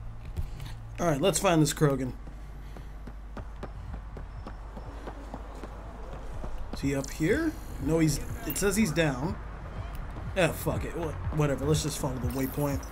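A young man talks with animation into a headset microphone.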